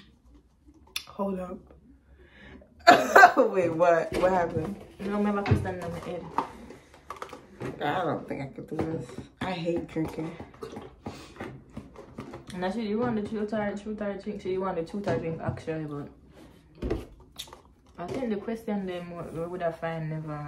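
Two young women talk with animation close by.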